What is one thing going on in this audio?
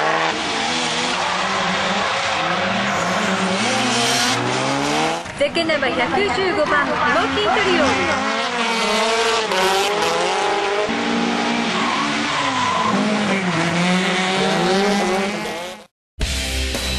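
Car engines roar and rev hard.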